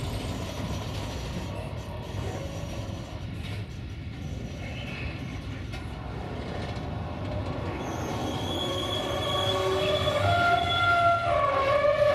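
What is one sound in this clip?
A freight train rumbles past close by on the rails.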